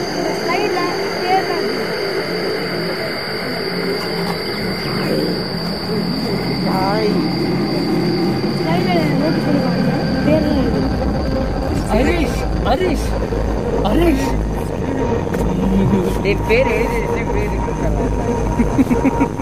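Boys talk and call out nearby outdoors.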